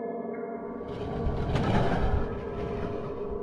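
A wooden sliding door rumbles open.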